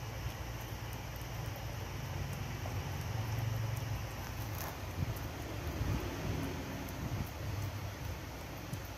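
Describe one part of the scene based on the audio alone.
Fingers rustle softly through hair close by.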